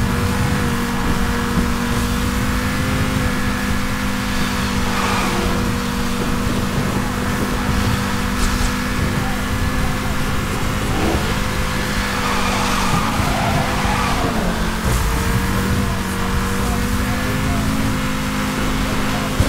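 Heavy rain hisses steadily.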